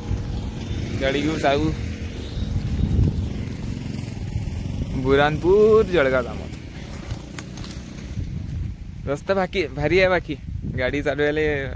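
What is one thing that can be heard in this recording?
A young man talks close to the microphone outdoors.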